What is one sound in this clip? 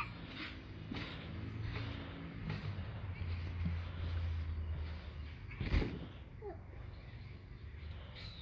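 A trampoline mat thumps and creaks as a child bounces.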